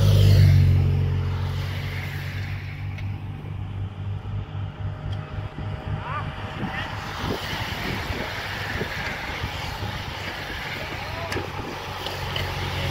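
A pack of racing bicycles whirs past.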